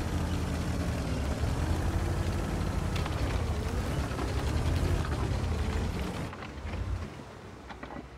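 A tank engine rumbles loudly.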